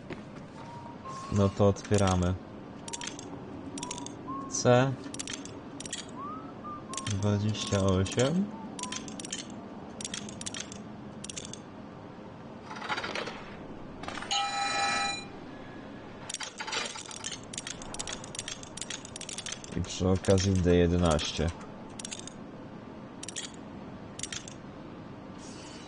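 Metal dials click as they are turned.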